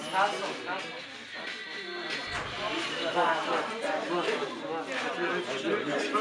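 Young people chatter and talk in a crowded room.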